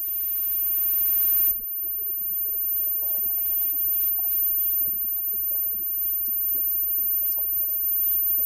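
A live band plays loud rock music through amplifiers.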